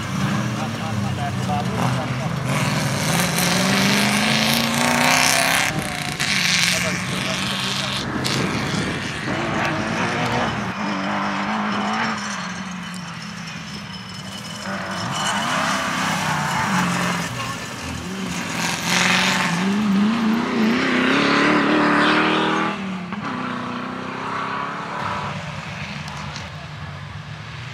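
An off-road car's engine revs hard and roars, rising and falling in pitch.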